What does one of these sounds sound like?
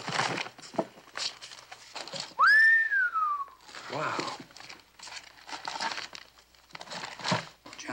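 Paper money rustles as it is handled.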